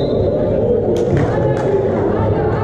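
A volleyball is struck hard by hand in a large echoing hall.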